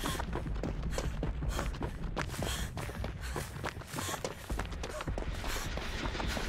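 Quick footsteps run over rustling ground.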